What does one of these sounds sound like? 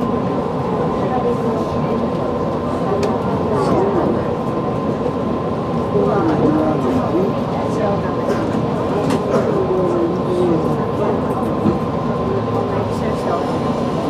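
Wheels squeal and screech against the rails.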